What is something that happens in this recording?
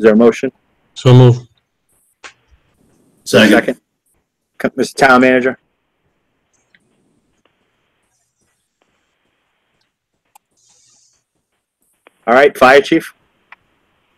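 Other men speak briefly over an online call.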